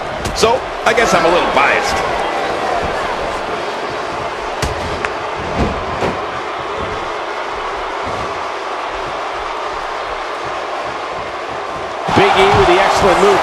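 Heavy blows thud as wrestlers strike each other.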